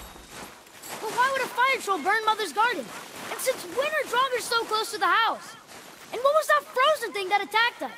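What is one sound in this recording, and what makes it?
A young boy speaks with animation.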